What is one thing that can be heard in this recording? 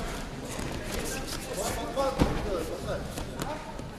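A judoka thuds onto a judo mat.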